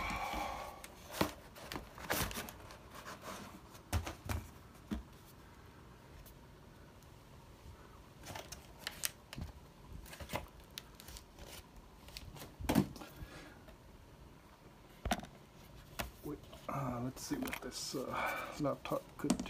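A laptop knocks and clicks lightly against a hard surface.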